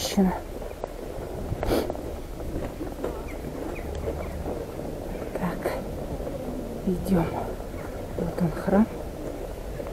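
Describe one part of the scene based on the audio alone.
Footsteps crunch on packed snow outdoors.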